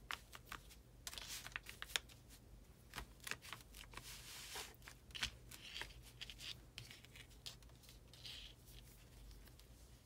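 Fabric rustles and crinkles as hands handle it.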